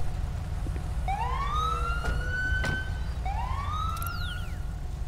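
A police siren gives short rising yelps.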